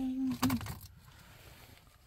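A wooden paint box knocks and rattles as it is handled.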